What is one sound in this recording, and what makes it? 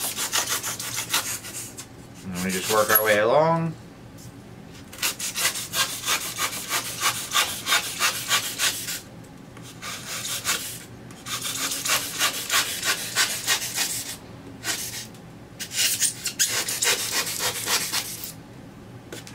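A knife scrapes and shaves rough foam in quick strokes.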